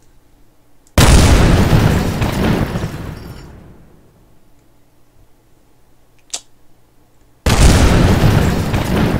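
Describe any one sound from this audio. Rocket engines roar at liftoff.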